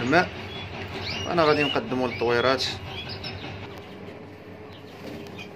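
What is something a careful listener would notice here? Small songbirds chirp and twitter close by.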